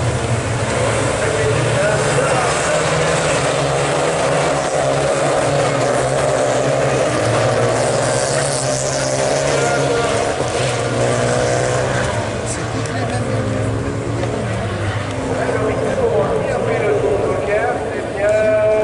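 Racing car engines roar and rev as cars speed around a track.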